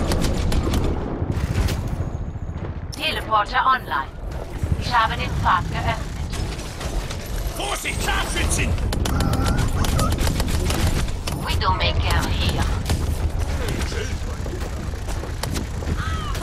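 Rapid gunfire rattles and pings nonstop.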